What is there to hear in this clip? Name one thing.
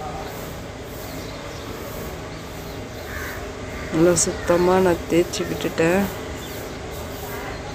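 Hands rustle coarse fibre against cloth.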